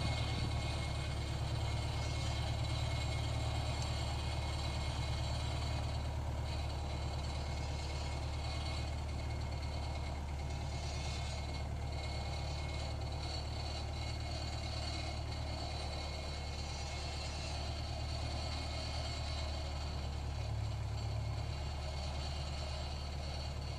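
A tractor's diesel engine rumbles steadily nearby.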